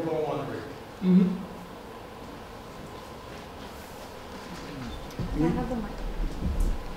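A man speaks through a loudspeaker in a large echoing hall.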